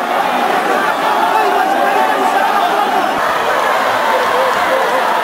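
A large crowd of women wail and cry out loudly.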